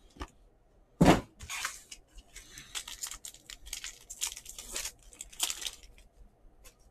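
A foil trading card pack crinkles and tears open in someone's hands.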